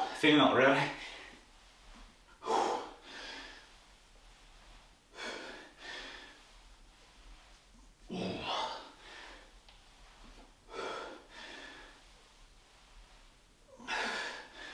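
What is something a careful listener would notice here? A man breathes out hard in short, regular bursts while exercising.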